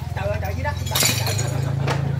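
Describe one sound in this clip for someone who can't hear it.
Bricks crack sharply as they are smashed.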